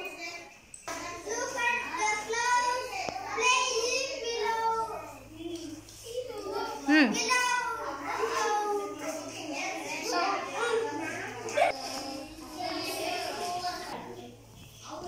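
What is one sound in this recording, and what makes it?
Young children sing together.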